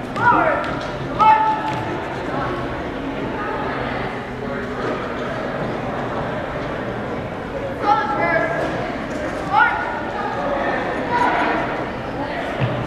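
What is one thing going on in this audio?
A man shouts drill commands that echo in a large hall.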